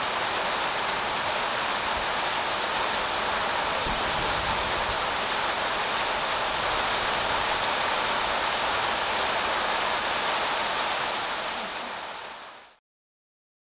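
Heavy rain pours steadily outdoors, then fades away.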